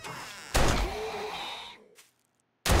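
A zombie growls and snarls up close.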